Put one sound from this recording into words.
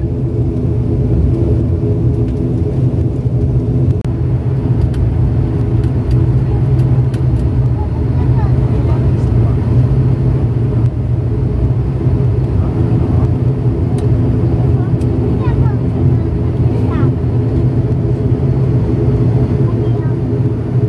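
A propeller engine drones loudly and steadily up close.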